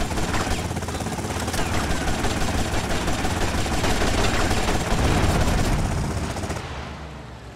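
A helicopter's rotor chops loudly overhead.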